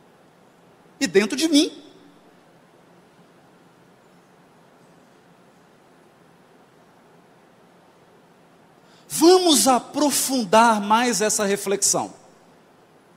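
A man speaks with animation into a microphone, in short bursts with long pauses.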